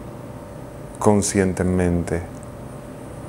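A man speaks calmly and softly close to a microphone.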